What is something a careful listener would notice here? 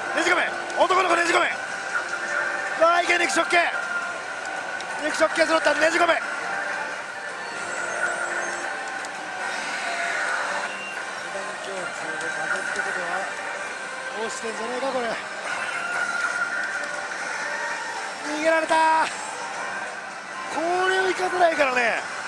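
A slot machine plays electronic music and jingles.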